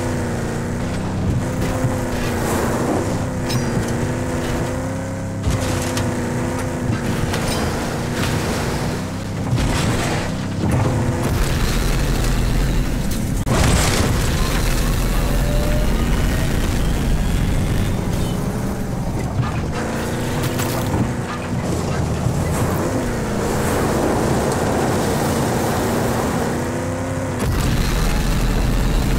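A car engine roars and revs as a vehicle drives fast over rough ground.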